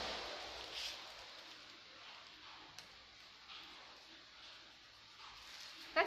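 Fabric rustles and crinkles close by.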